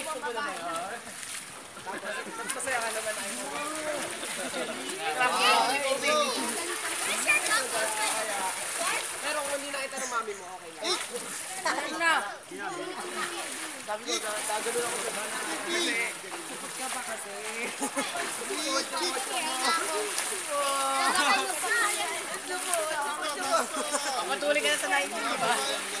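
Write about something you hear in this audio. Children shout and laugh playfully nearby, outdoors.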